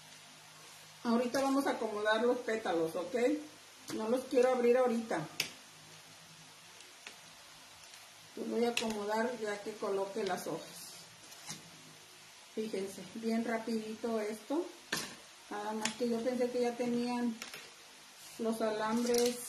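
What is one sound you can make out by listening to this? A middle-aged woman speaks calmly and clearly, close by.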